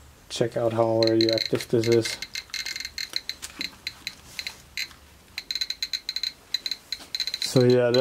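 A radiation counter beeps and clicks rapidly.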